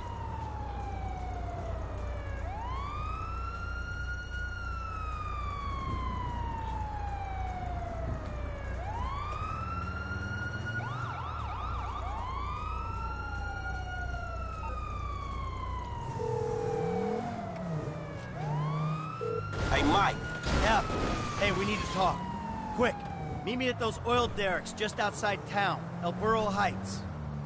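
A car engine revs up and drops in pitch again and again as it shifts gears.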